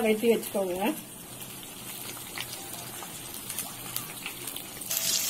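Vegetables sizzle and crackle softly in a hot pan.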